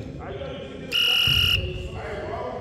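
A referee's whistle blows one short, shrill blast.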